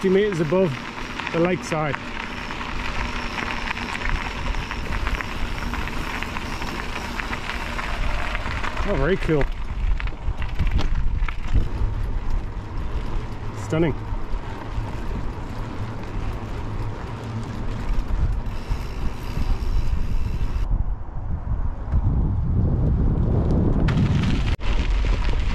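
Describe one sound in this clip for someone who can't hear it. Bicycle tyres crunch over a gravel track.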